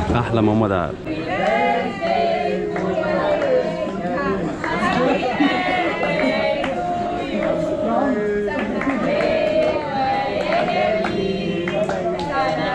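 Several people chatter and laugh together.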